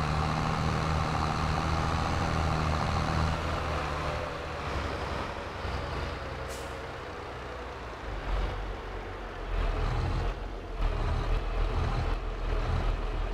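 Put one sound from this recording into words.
A tractor engine rumbles steadily as the tractor drives along.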